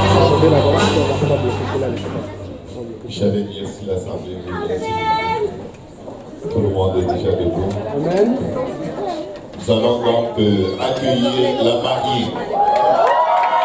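A crowd of adults and children chatter nearby, with voices overlapping.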